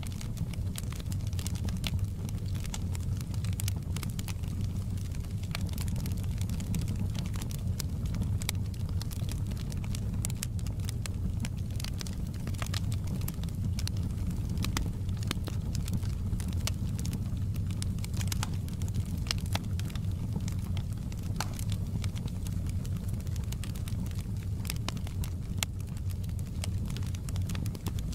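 Burning logs crackle and pop sharply.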